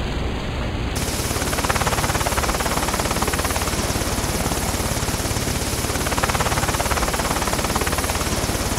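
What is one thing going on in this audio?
A helicopter's rotor whirs steadily.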